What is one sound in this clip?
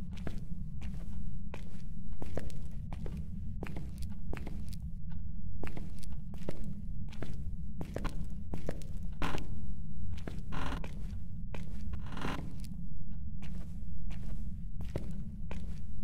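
Slow footsteps thud on a hard floor.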